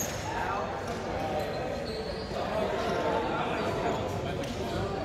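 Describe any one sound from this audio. A crowd of young people chatter and call out in a large echoing hall.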